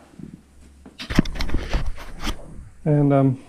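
A metal disc clinks and scrapes close by.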